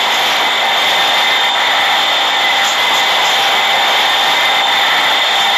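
A subway train roars steadily along the tracks at speed.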